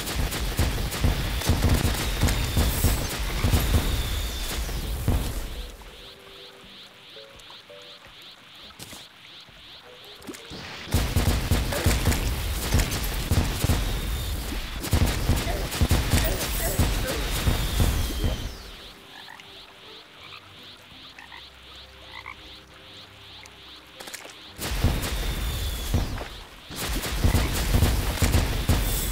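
Explosions crackle and boom in rapid bursts.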